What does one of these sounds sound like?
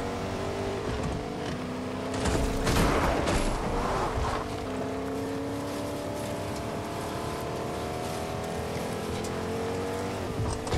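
A pickup truck engine hums steadily as it drives.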